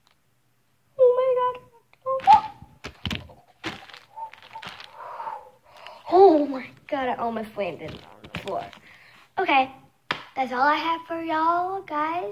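A young girl talks animatedly close by.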